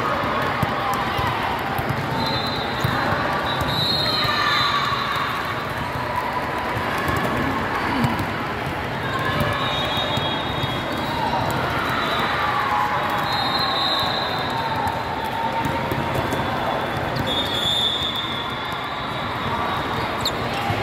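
Many voices chatter and call out in a large echoing hall.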